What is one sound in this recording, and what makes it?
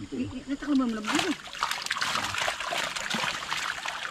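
Tilapia thrash and splash in a net in shallow water.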